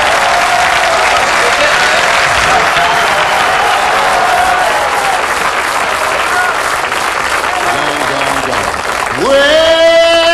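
An older man sings into a microphone.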